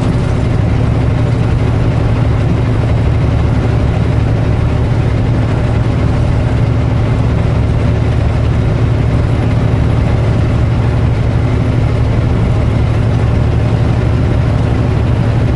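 An engine drones steadily, heard from inside a vehicle.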